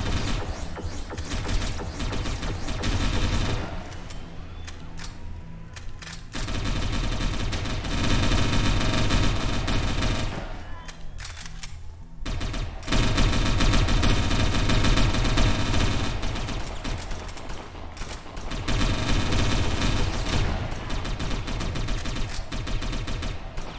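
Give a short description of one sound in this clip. Gunfire crackles in a video game.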